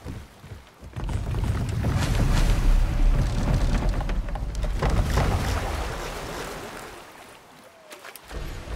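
Rushing water churns and splashes loudly.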